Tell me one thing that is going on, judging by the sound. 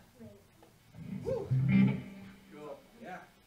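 An electric guitar plays a few short, loose notes.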